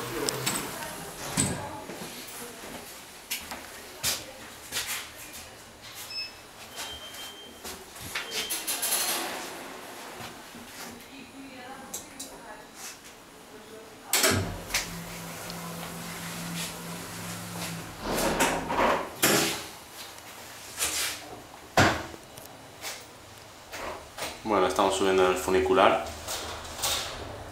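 Metal parts clank and knock sharply now and then.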